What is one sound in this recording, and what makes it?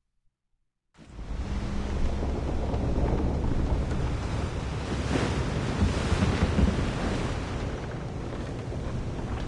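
Wind and waves roar on a stormy sea.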